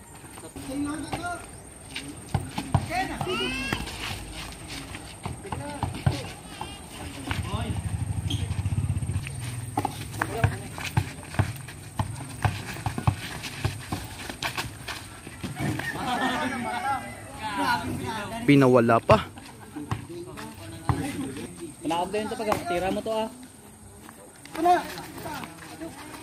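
A basketball bounces on hard dirt.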